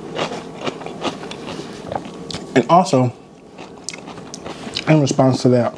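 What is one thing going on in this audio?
Crab shells crack and crunch in a man's hands.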